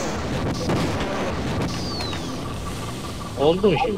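An energy weapon fires a crackling, buzzing beam.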